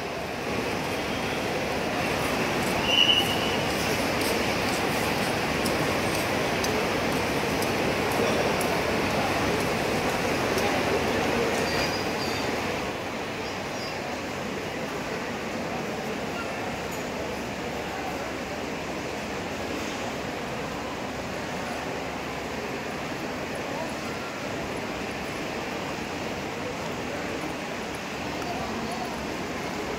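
Footsteps shuffle across a hard floor.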